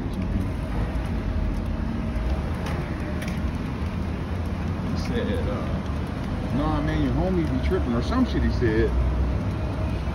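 A dog's paws patter on concrete.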